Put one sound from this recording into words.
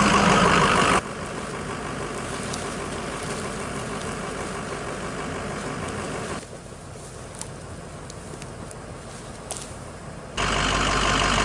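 Branches rustle and scrape across snow.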